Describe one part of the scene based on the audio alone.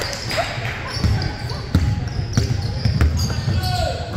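A basketball bounces with loud echoing thuds.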